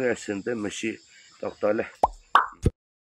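A man speaks calmly into a nearby microphone.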